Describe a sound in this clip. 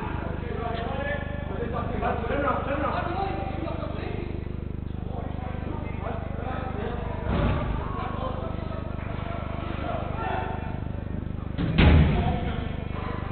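Men shout and call out to each other across a large echoing indoor hall.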